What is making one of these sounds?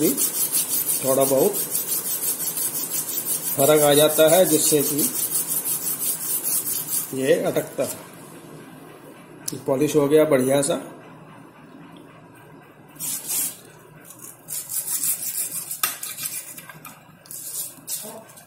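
A small metal part scrapes back and forth on sandpaper.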